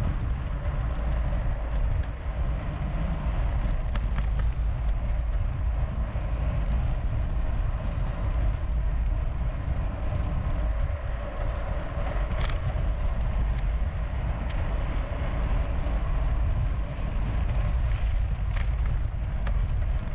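Bicycle tyres crunch and hiss over a gravel road.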